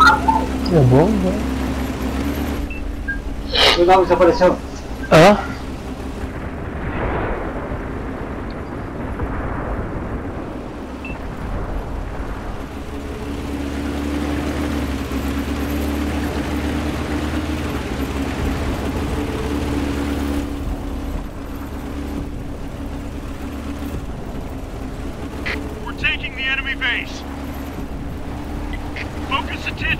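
Tank tracks clatter over the ground.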